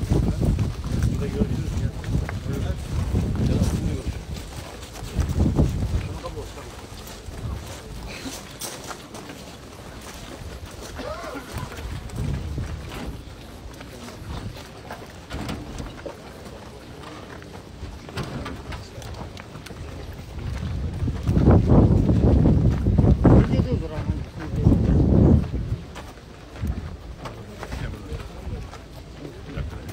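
A large crowd of men and women murmurs and talks nearby outdoors.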